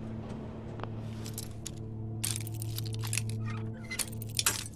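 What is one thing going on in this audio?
A pick scrapes and clicks inside a metal lock.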